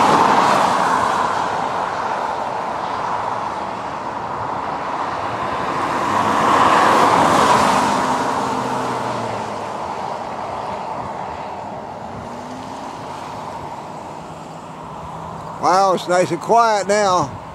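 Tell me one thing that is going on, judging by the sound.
A vehicle drives along a highway with a steady rushing road noise.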